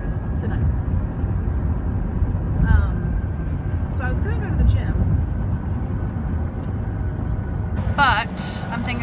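A car's engine and road noise rumble steadily from inside the car.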